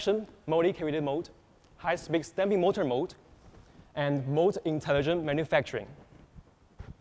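A young man speaks clearly and calmly into a microphone.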